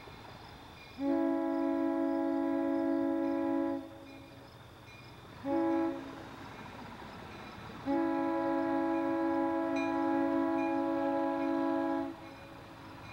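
A diesel locomotive sounds its air horn in long and short blasts at a crossing.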